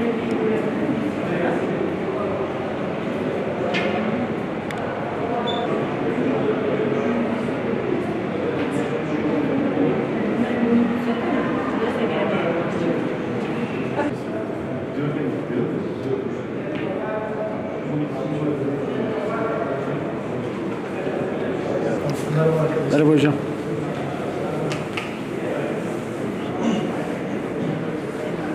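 Several men murmur and talk nearby in an echoing hallway.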